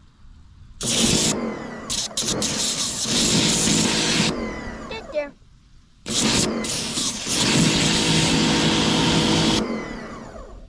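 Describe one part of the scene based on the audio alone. A pressure washer sprays a loud hissing jet of water against a pumpkin, in bursts.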